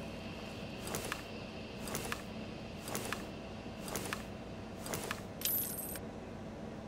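Metal clicks sound in a steady series as ammunition is loaded.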